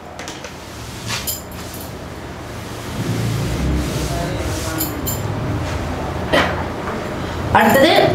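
A cloth wipes across a chalkboard.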